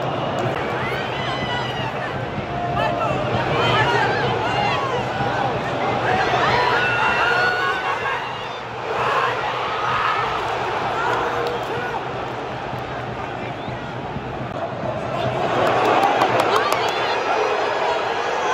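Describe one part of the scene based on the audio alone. A large stadium crowd roars and chants in an open, echoing space.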